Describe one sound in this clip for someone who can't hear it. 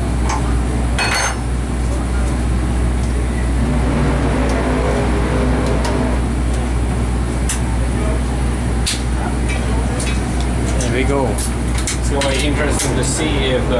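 Electric sparks snap sharply now and then.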